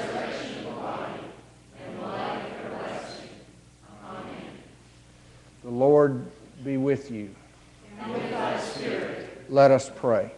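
A group of people recite together in unison in an echoing hall.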